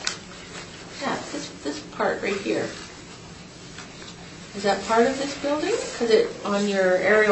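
A man and a woman talk calmly, heard through a distant microphone.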